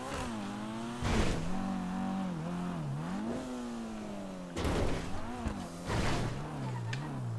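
Car tyres thump hard as the car lands on the track.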